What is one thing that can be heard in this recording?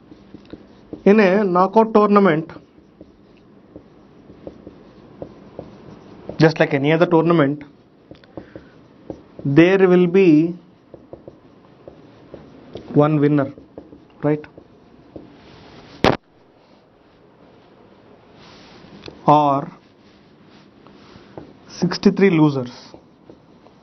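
A man speaks slowly and clearly, in short phrases, as if teaching.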